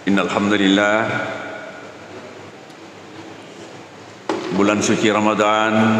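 An elderly man chants slowly into a microphone in a large echoing hall.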